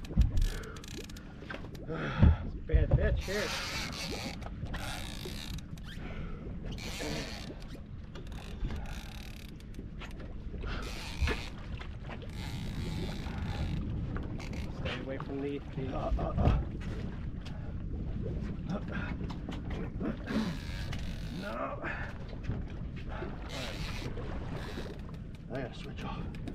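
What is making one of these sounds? A man shouts excitedly from a boat deck nearby.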